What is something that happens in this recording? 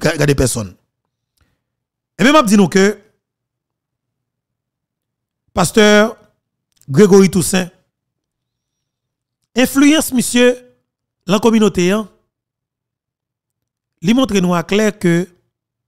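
A man speaks into a close microphone in short, emphatic phrases with pauses between them.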